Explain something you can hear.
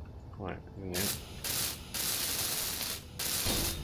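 A power grinder whirs and hisses loudly.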